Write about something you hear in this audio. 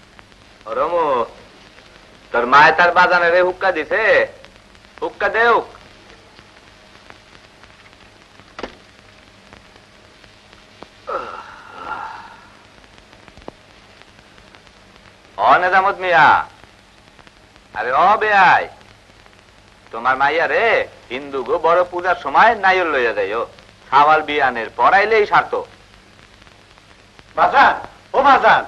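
A woman sings with long, wavering notes in short phrases.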